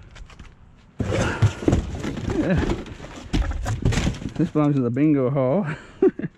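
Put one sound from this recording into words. Cardboard and trash shift and rustle as hands rummage through a bin.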